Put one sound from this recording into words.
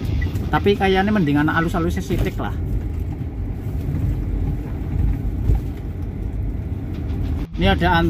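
A car engine hums low and steadily from inside the car.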